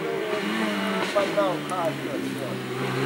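A rally car's engine pops and crackles as it shifts gears.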